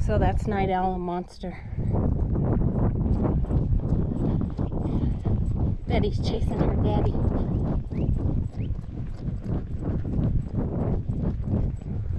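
Horse hooves thud on dry ground at a steady gait.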